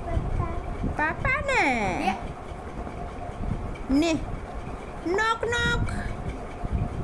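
A toddler babbles and squeals up close.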